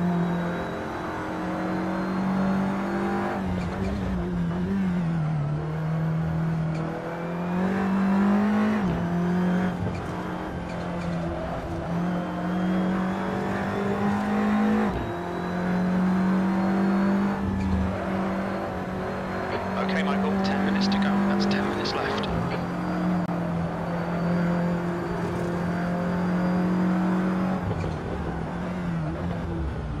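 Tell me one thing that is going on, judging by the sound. A racing car engine roars steadily, rising and dropping in pitch as gears shift.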